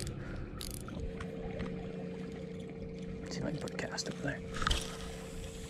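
A fishing reel whirs as a line is cast out.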